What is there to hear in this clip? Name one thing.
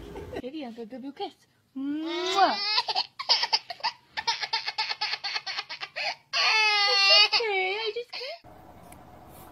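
A toddler girl cries loudly and wails.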